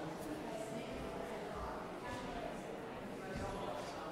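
Footsteps shuffle softly on carpet.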